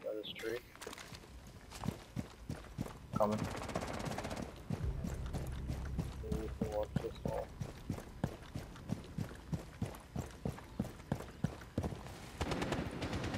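Quick footsteps tread on hard ground outdoors.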